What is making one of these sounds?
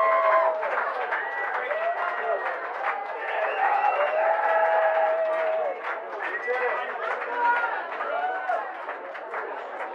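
A harmonica wails with bending notes.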